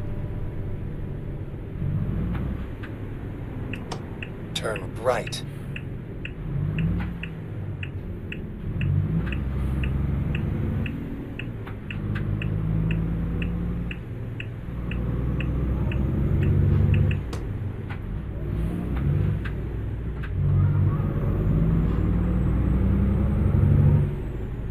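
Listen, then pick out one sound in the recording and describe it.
A truck engine rumbles steadily, rising and falling as it speeds up and slows down.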